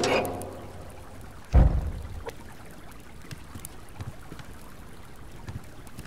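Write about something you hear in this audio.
A fire crackles softly in a stove.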